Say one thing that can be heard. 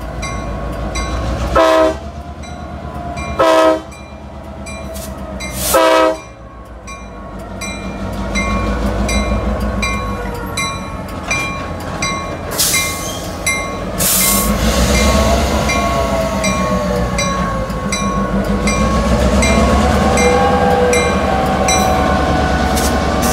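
A diesel locomotive engine rumbles loudly as it rolls by.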